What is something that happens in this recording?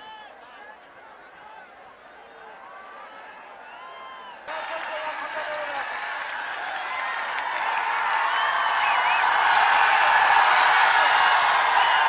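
A large outdoor crowd shouts and cheers, growing louder.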